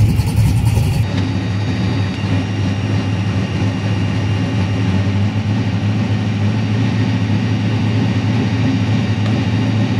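A race car engine idles with a muffled rumble from inside the car.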